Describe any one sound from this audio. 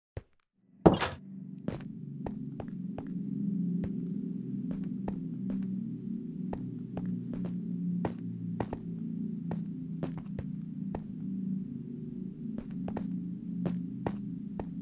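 Footsteps crunch on stone.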